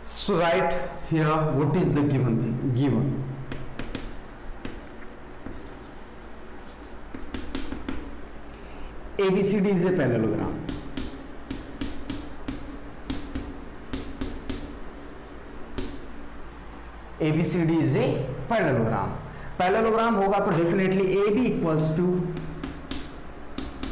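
A young man speaks calmly and clearly, close by.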